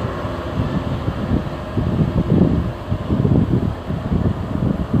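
A diesel passenger locomotive approaches with its engine rumbling.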